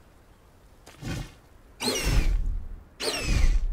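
Large wings beat with loud whooshes.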